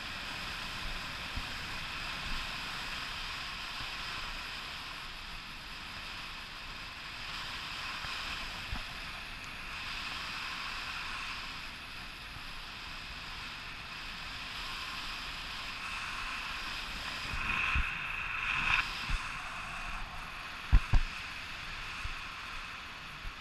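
Wind rushes steadily past a microphone high in the open air.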